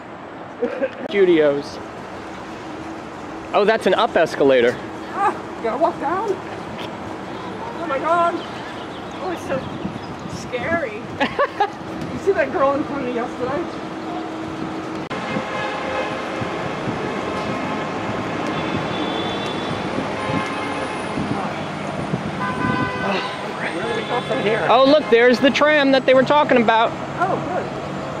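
A man talks close by outdoors.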